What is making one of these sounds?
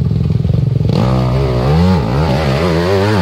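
A dirt bike engine roars and revs as the bike struggles in mud.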